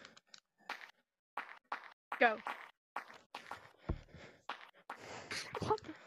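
Hands thump quickly on the ground.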